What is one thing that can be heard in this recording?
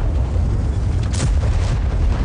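A shell explodes loudly nearby.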